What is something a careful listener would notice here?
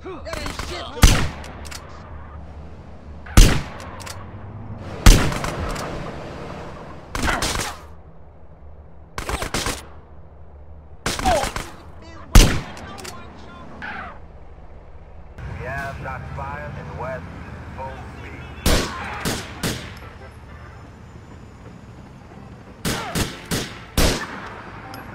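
Sniper rifle shots crack loudly, one at a time.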